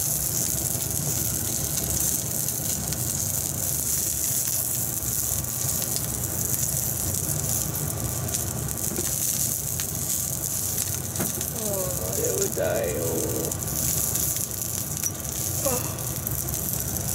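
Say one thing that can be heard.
Sausages sizzle steadily in hot oil.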